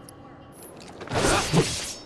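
A sword slashes with a sharp whoosh and impact.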